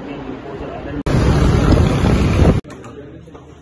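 Traffic rushes past on a road.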